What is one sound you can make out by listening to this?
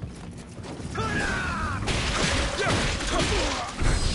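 A sword slashes and strikes with sharp metallic hits.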